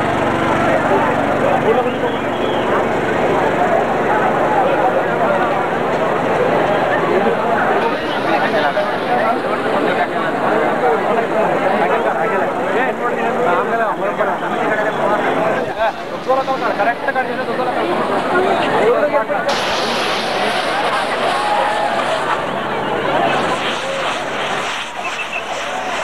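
A large crowd of men chatters and shouts nearby.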